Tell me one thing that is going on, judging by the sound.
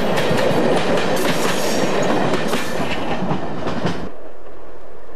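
A train rolls past close by, its wheels clattering on the rails.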